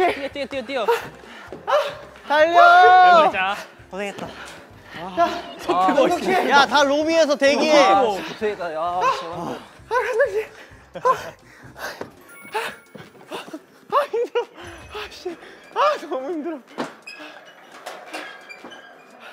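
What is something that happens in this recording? Young men shout and laugh excitedly close by.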